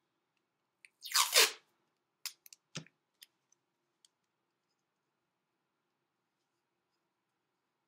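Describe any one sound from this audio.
Fingers tap and press tape against a clay pot.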